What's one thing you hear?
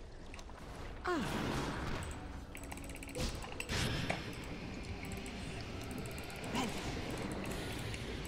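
Fantasy video game battle sounds and spell effects play.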